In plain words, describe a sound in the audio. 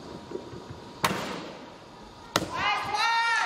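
A gymnast lands on a mat with a thud.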